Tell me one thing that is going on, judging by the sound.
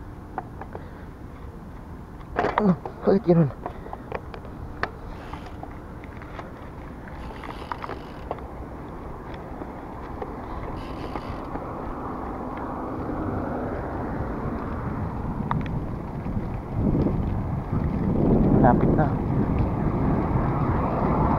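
A bicycle's tyres hum on paving.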